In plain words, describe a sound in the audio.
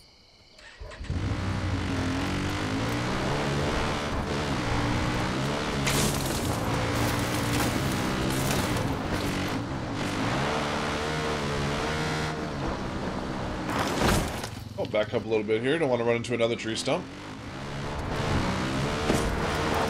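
A quad bike engine hums and revs steadily while driving over rough ground.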